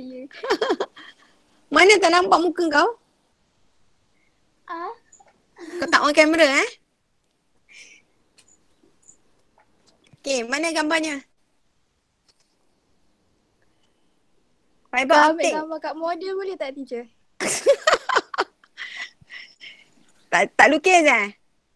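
A young woman laughs through an online call.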